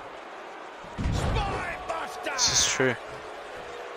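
A body slams onto a ring mat with a heavy thud.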